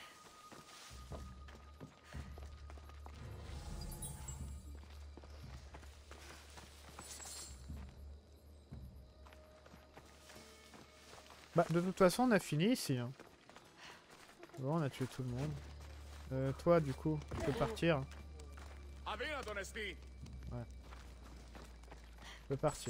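Footsteps crunch on dirt and stone.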